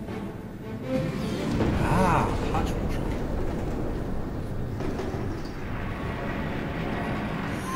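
A heavy metal cylinder rumbles as it rolls.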